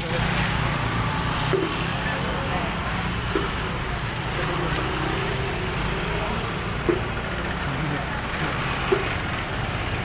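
A motor scooter engine idles and rumbles close by.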